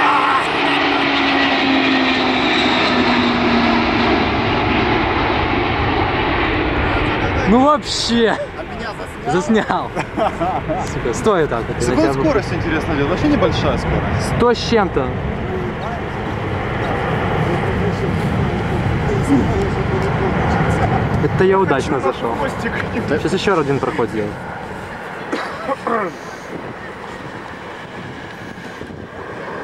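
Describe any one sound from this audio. A large jet plane roars loudly overhead with a falling whine, then fades into the distance.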